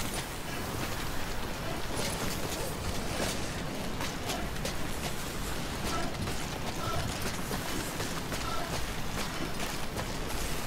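Boots scrape and knock against rock.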